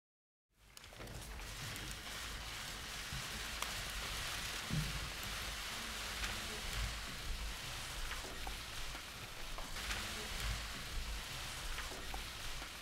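A crowd murmurs quietly in a large room.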